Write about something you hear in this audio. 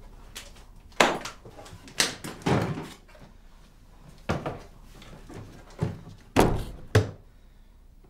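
A heavy wooden lid bangs and knocks loudly.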